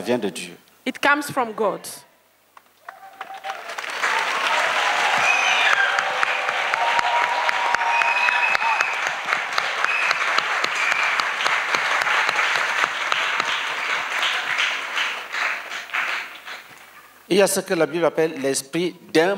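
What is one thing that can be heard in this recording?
A woman speaks with animation into a microphone over loudspeakers, in a large echoing space.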